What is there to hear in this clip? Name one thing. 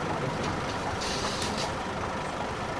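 A ticket printer whirs briefly.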